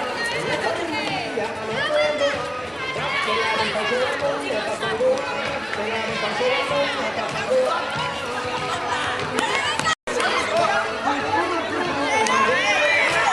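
A crowd of young people chatters and calls out loudly outdoors.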